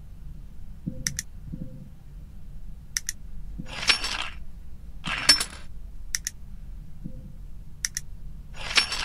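Short clicks sound as lock pieces are picked.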